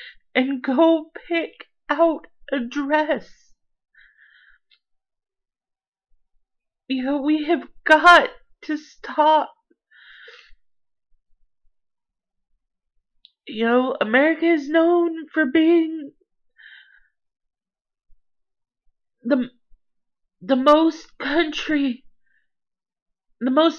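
A woman talks calmly up close, with pauses.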